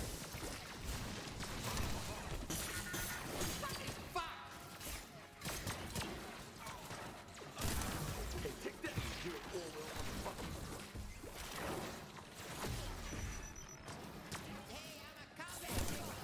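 Video game guns fire in rapid bursts with blasts and impacts.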